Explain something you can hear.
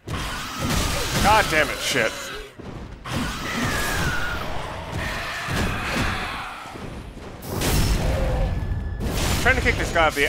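A large bird-like creature shrieks.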